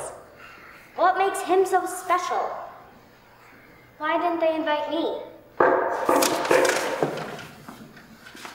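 A young girl speaks loudly and expressively in a large room.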